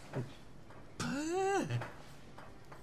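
A man lets out a short, satisfied groan close by.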